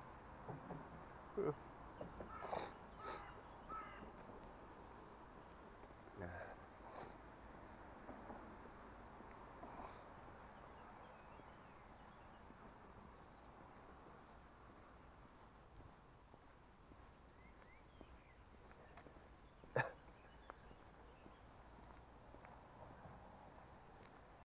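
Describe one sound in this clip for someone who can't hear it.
A bicycle rattles and bumps over paving stones.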